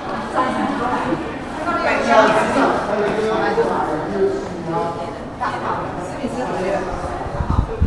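Women chat nearby.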